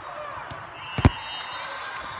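A volleyball thuds off a player's arms.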